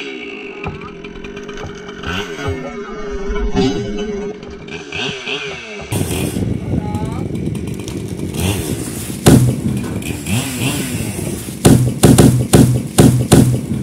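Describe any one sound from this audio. A chainsaw engine runs close by, revving up and down.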